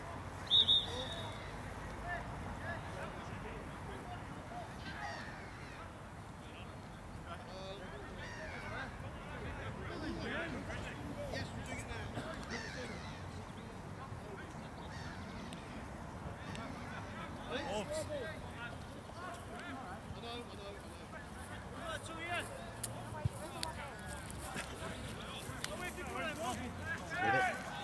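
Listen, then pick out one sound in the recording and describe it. Players shout to each other in the distance across an open field.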